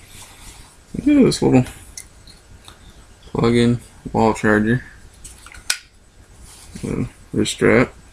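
A young man speaks close to the microphone in short bursts.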